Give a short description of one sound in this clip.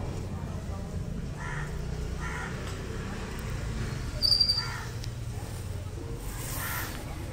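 Leaves rustle as a man handles a potted plant.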